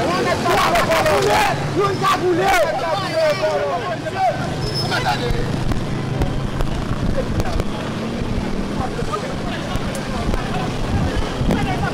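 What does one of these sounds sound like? A street fire crackles.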